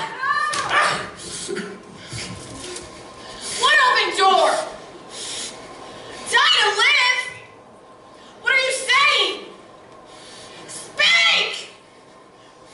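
A man cries out in pain again and again in a large echoing hall.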